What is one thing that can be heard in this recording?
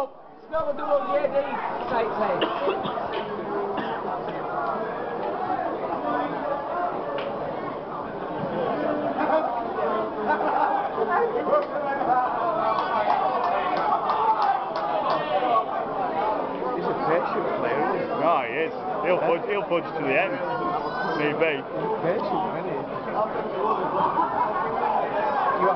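A crowd of men and women chatter steadily in a large echoing hall.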